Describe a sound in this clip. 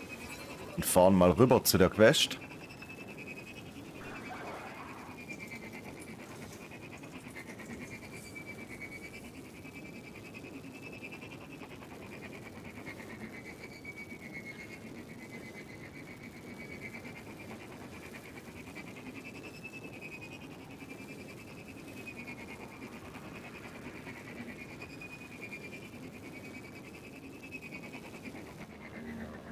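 A hover vehicle hums steadily as it speeds along.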